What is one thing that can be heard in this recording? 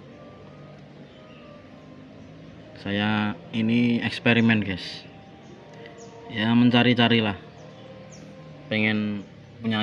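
A small metal part clicks as fingers handle it.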